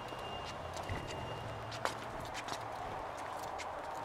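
Footsteps tap on cobblestones nearby.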